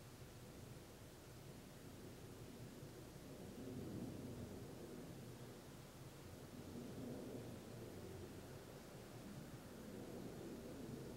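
A man breathes slowly and deeply close by.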